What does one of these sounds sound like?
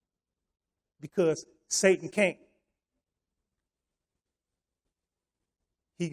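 An elderly man speaks with emphasis into a microphone.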